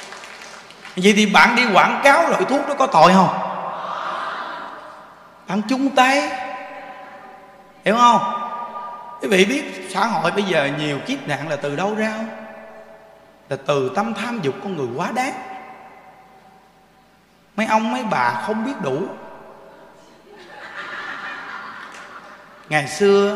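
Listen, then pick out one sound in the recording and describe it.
A man speaks with feeling into a microphone, his voice echoing in a large space.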